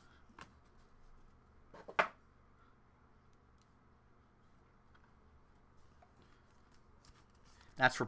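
Trading cards rustle and tap as they are handled close by.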